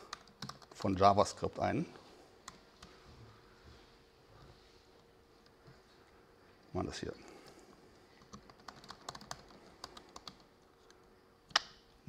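Keys click on a laptop keyboard.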